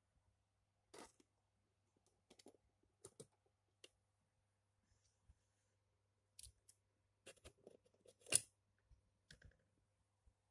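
Plastic toy parts click and knock as a hand handles them.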